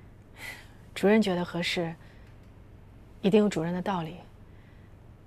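A young woman speaks quietly and calmly nearby.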